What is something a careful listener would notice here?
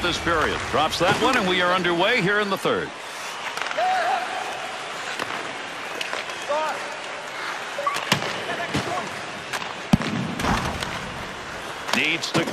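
A hockey stick slaps a puck on ice.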